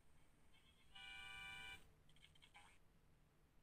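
A bright chime of coins jingles as they drop into a jar.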